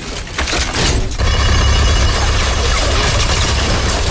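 A gun fires rapidly in bursts.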